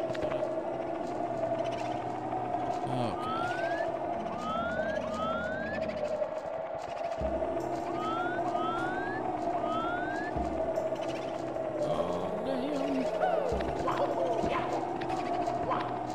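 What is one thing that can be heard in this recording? Spooky video game music plays steadily.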